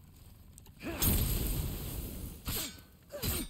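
A fiery blast roars.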